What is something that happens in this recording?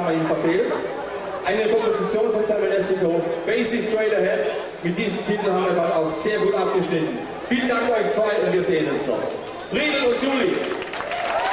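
A large band plays a lively tune outdoors.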